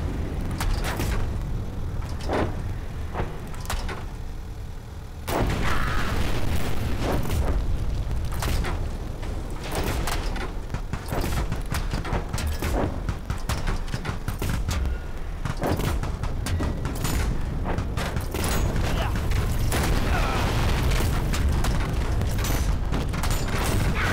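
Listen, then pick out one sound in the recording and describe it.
Shells explode with booming blasts.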